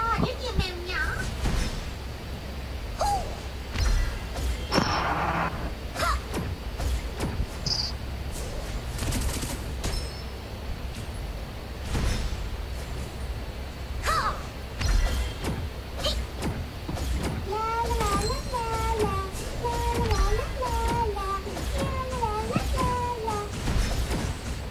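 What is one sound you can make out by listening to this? Game battle effects clash and whoosh in quick bursts.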